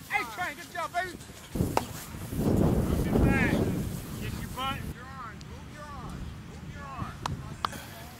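Young football players run and thud across grass.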